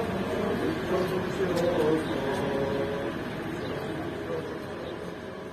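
Men chant a hymn together.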